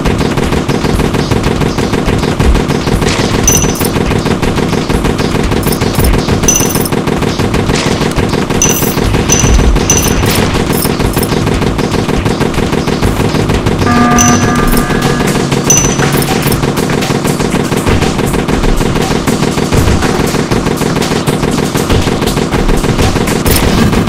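Rapid gunfire crackles steadily.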